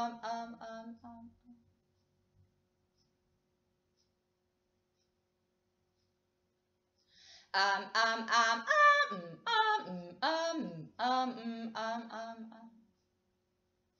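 A young woman chants softly in a slow, melodic voice, close by.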